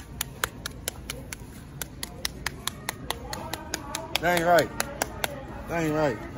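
A small plastic object clicks repeatedly in a hand.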